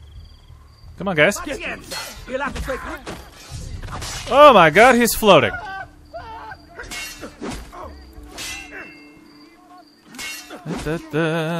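Men grunt and cry out while fighting.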